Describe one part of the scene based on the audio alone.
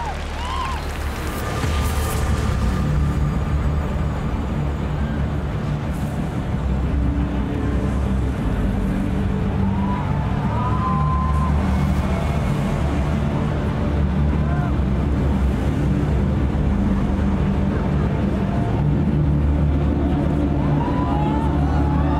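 Loud pop music with a heavy beat plays through loudspeakers in a large open stadium.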